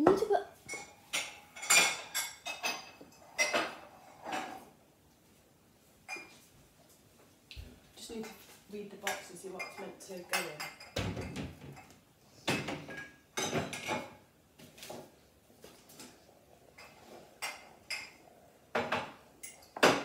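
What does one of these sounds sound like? A spoon scrapes and clinks against a glass bowl.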